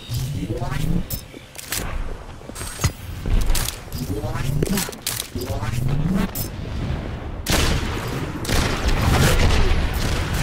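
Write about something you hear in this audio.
A sniper rifle fires loud, sharp shots.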